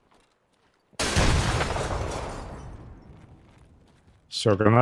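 A rifle fires a loud shot that echoes away.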